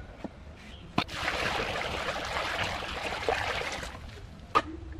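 Water splashes as it pours into a heap of sand.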